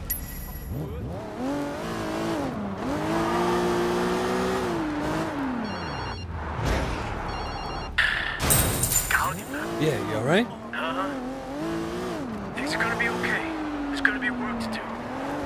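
A car engine revs and roars as the car speeds up and slows down.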